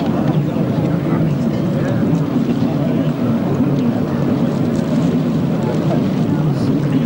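Several motorcycle engines idle and rev loudly outdoors.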